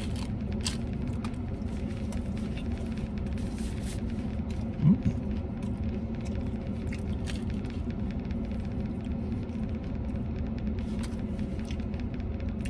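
A man chews food noisily, close by.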